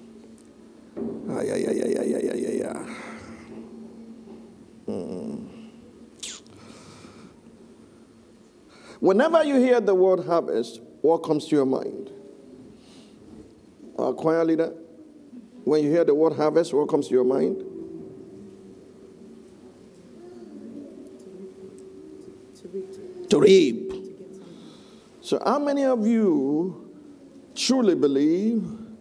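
An elderly man speaks with animation through a microphone in a large echoing room.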